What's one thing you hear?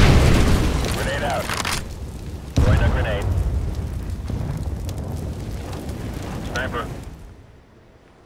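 A fire roars and crackles close by.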